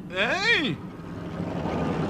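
A man shouts excitedly.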